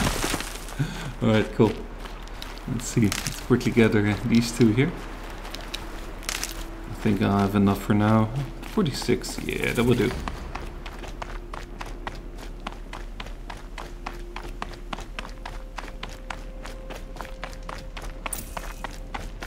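Footsteps run quickly over rough ground.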